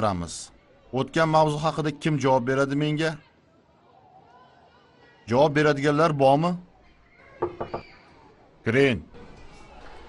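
A man speaks loudly and clearly in a room.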